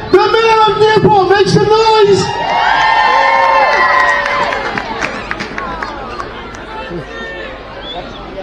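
A man speaks into a microphone through loudspeakers.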